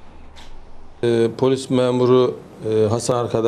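A middle-aged man speaks calmly into microphones, close by.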